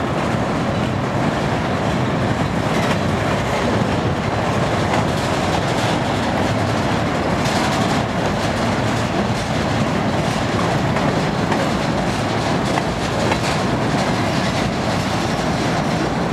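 Steel wheels click over rail joints.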